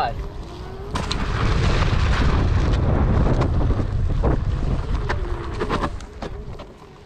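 Tyres crunch and rumble over gravel and dirt.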